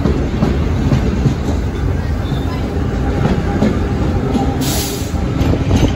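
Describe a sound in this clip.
A vintage subway train rumbles past through an open-air station.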